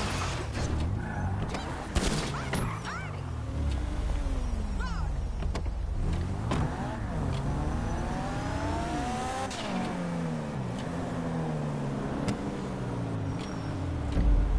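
A car engine revs up and down as a car speeds along.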